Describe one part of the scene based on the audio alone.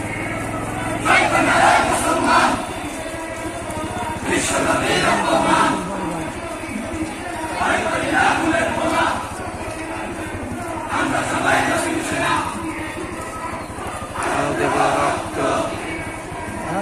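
A crowd of men chants slogans together in rhythmic bursts outdoors.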